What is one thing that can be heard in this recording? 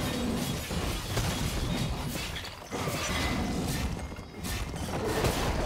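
Fantasy combat sound effects crackle and whoosh.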